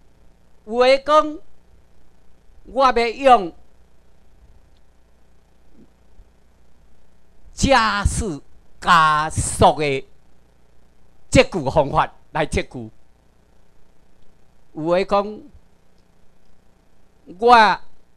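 A man speaks through a microphone and loudspeakers in a large room, pausing between phrases.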